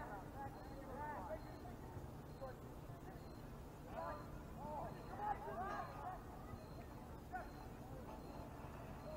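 Distant players shout to each other across an open field outdoors.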